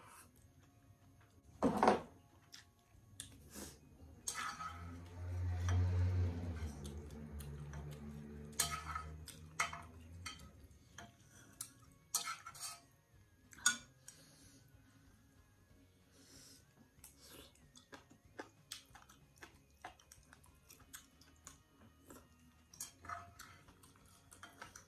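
A young woman chews and smacks her lips up close.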